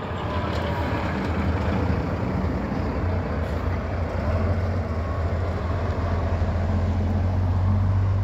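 A heavy truck's diesel engine rumbles as it drives past and away.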